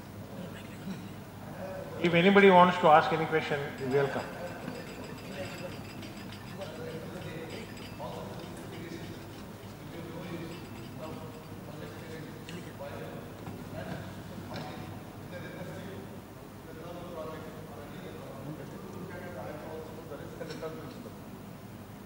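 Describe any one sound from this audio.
A man speaks steadily through a microphone in a large room.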